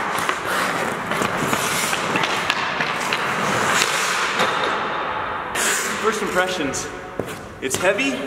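A hockey stick clicks and taps against a puck.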